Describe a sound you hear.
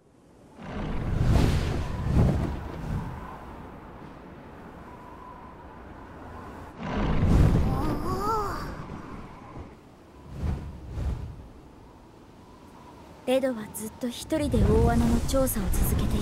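Large wings flap and whoosh through the air.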